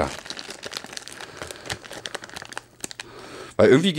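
Small items rustle and click in a man's hands.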